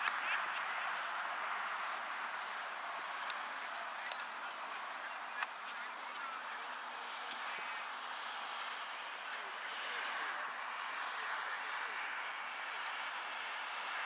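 Wind rushes steadily outdoors.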